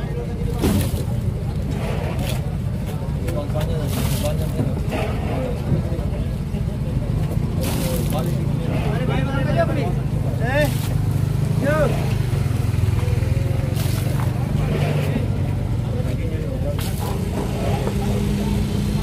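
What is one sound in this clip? A heavy knife chops and thuds against a wooden block.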